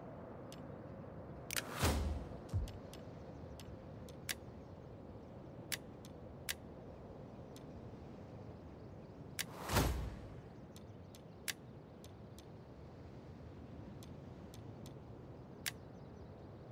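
Soft clicks of a game menu sound now and then.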